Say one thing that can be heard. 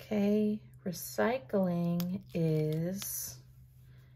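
A sticker peels softly off a paper sheet.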